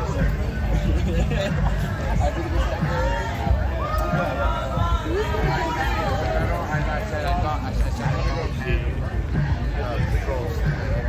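A crowd of men and women talk and chatter nearby outdoors.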